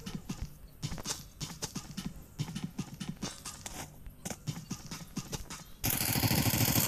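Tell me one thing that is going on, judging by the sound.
Footsteps clang quickly on a metal walkway.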